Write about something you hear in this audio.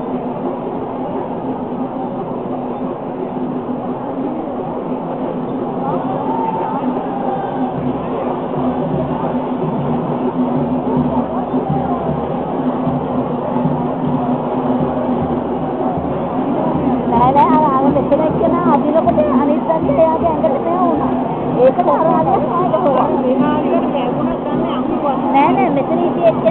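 A large crowd chatters and calls out at a distance outdoors.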